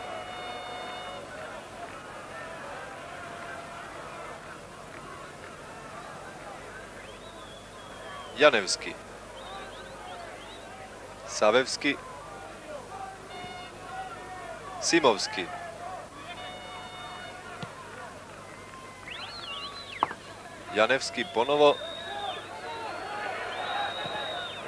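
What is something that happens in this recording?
A large crowd murmurs in a stadium.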